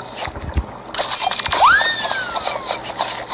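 A machine whirs and squeezes with bubbling, gurgling sounds.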